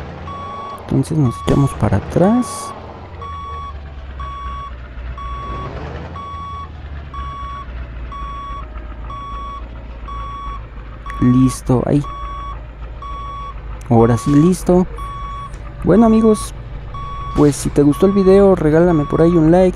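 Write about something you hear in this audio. A truck engine hums steadily at low idle.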